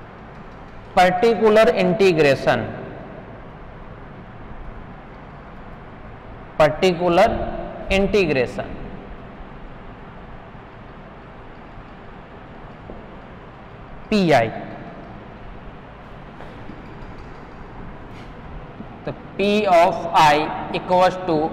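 A man speaks steadily in short bursts with pauses, as if explaining a lesson.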